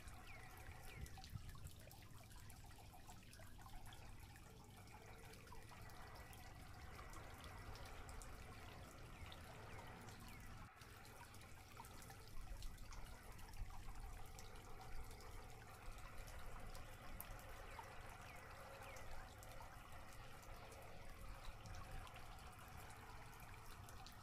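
A man murmurs softly up close.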